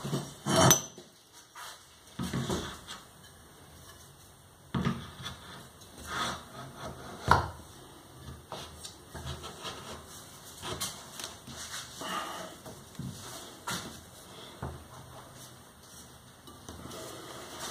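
Metal rods clack and knock against a wooden board.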